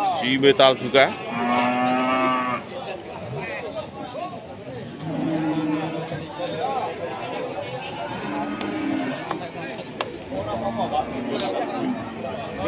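A crowd of men chatters all around outdoors.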